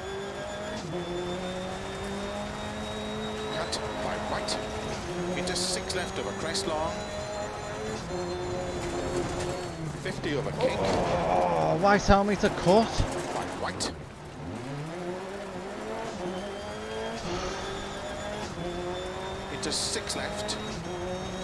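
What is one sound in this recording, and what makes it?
A rally car engine revs hard, rising and dropping in pitch through gear changes.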